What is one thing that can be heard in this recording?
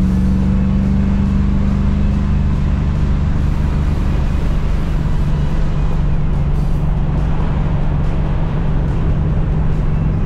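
A car engine drones loudly and steadily from inside the car.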